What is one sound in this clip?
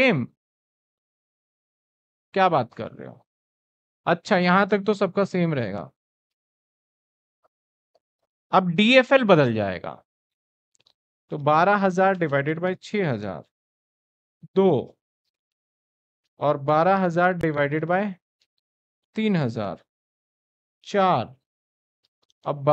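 A man explains calmly into a close microphone, in short bursts with pauses.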